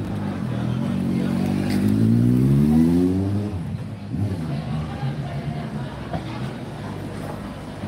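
Traffic hums along a city street.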